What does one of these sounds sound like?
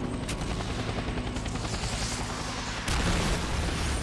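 A helicopter whirs overhead.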